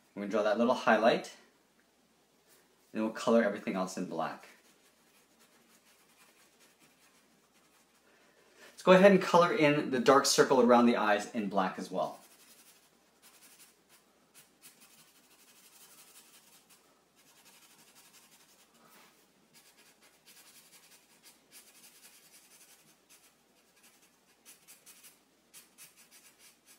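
A felt-tip marker squeaks and scratches softly on paper.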